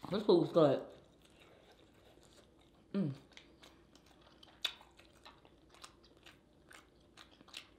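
Wet food squelches and clicks as fingers dig through it.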